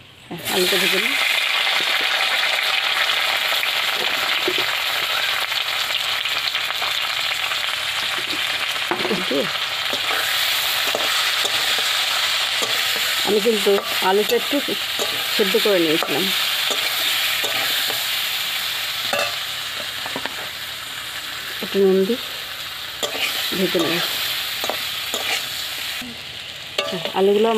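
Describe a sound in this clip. Potatoes sizzle steadily in hot oil.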